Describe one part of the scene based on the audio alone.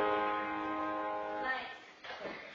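An organ holds a final chord that stops suddenly.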